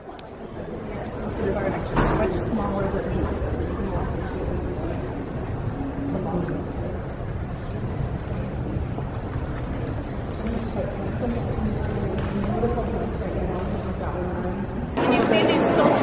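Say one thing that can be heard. Many people murmur and talk in a large echoing hall.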